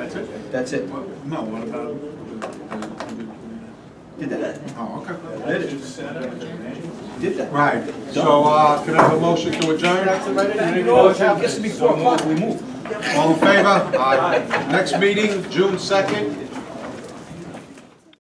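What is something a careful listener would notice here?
Men talk among themselves in a room with a slight echo.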